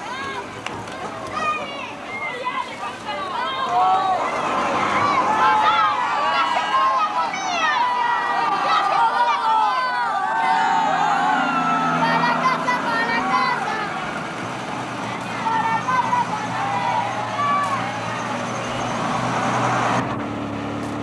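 Children shout and cheer excitedly.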